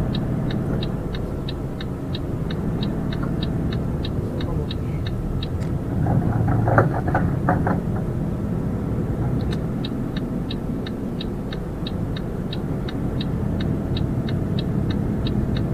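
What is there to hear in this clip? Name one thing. A turn signal ticks at a steady, quick pace.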